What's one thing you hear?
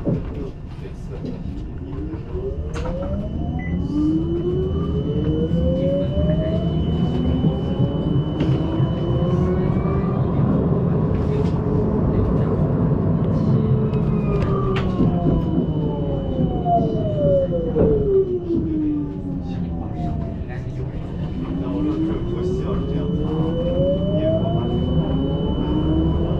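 A tram's electric motor whines, rising in pitch as it speeds up and falling as it slows.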